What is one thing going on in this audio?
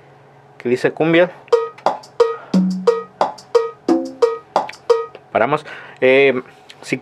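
An electronic keyboard plays a lively percussion rhythm with short pitched hits.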